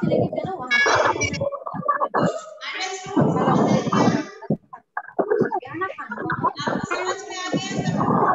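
A woman speaks clearly and with animation, close by.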